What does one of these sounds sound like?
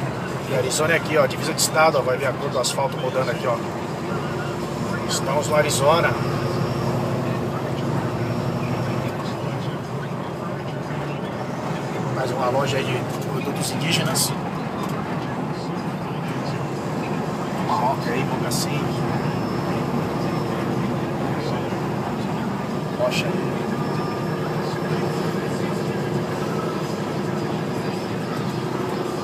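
A vehicle's engine hums steadily as it drives along a highway.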